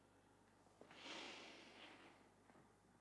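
A young woman gasps softly nearby.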